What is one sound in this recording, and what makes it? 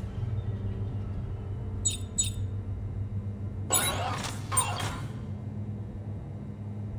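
Short electronic menu blips sound as selections change.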